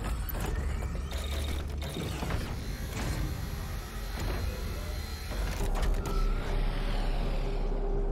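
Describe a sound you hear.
Gunfire blasts and booms from a heavy weapon.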